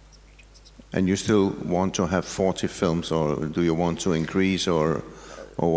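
An older man speaks steadily through a microphone.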